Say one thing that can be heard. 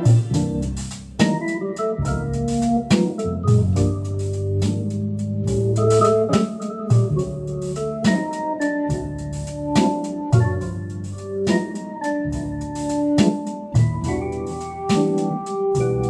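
An organ's bass pedals sound deep notes.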